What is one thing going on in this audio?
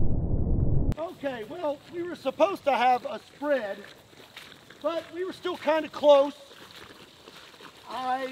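A man talks calmly outdoors.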